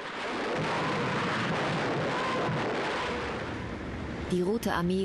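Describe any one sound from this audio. Rockets roar and whoosh as they launch.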